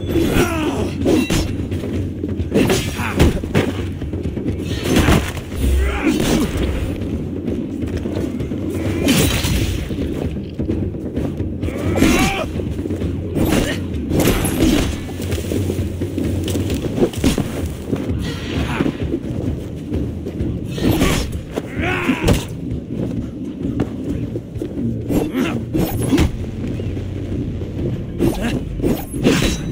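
Weapons swing and strike in a fight.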